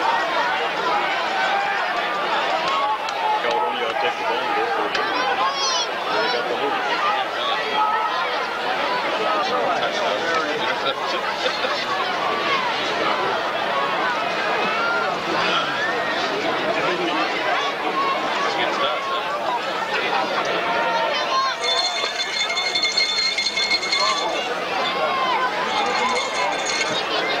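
A crowd of players and spectators chatters and calls out loudly outdoors.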